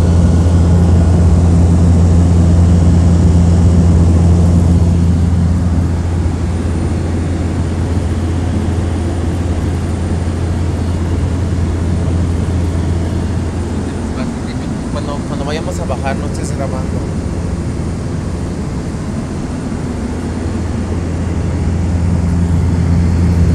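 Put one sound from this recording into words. The engine of a light propeller plane drones steadily, heard from inside the cabin.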